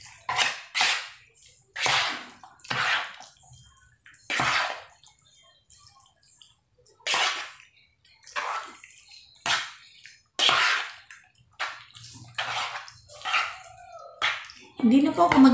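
Wet food squelches as it is mixed by hand.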